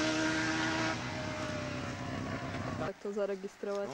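A motorcycle engine roars loudly as it approaches.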